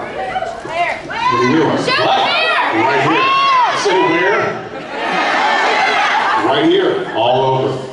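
A second man speaks into a microphone, heard through loudspeakers.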